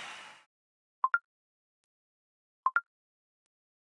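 Short electronic clicks sound twice.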